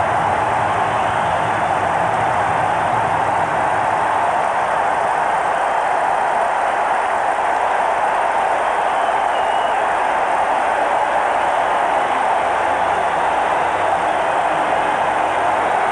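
A large stadium crowd cheers and roars loudly throughout.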